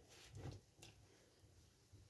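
A spoon stirs and scrapes in a pot.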